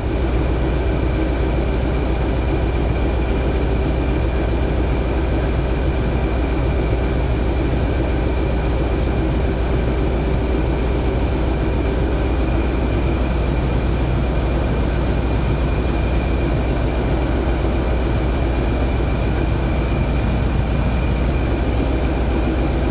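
Train wheels rumble along the rails.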